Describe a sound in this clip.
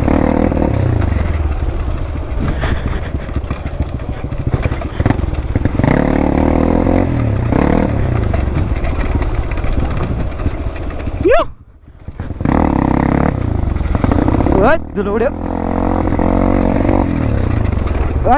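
A dirt bike engine revs up and down close by.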